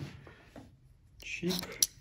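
A utility knife blade clicks as it slides out.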